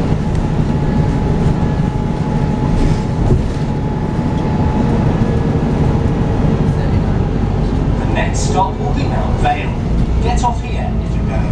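A bus engine rumbles steadily from inside while driving.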